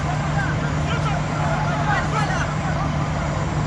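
Men shout calls to each other across an open field.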